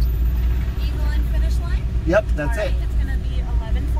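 A young man speaks from outside the car.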